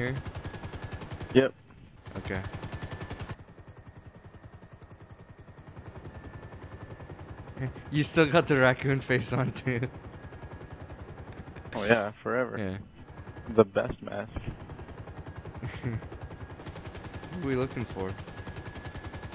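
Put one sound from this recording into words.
A helicopter's rotor thumps steadily overhead.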